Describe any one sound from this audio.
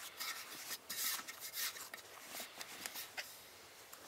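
A plastic scraper scrapes dough in a metal bowl.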